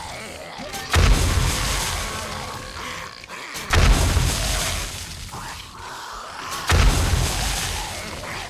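Heavy blows thud loudly against a body, three times.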